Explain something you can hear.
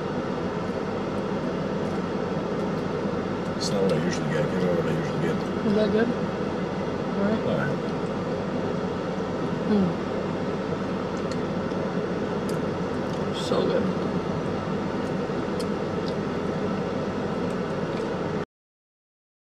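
A plastic spoon scrapes inside a cup.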